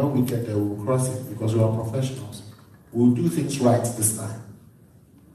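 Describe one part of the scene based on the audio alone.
A second man speaks through a microphone.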